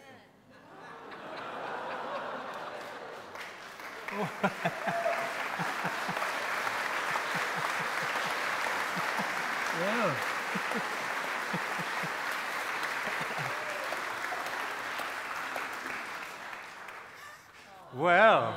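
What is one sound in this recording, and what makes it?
A congregation applauds steadily.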